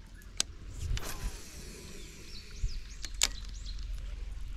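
A fishing reel clicks and whirs as its handle is turned.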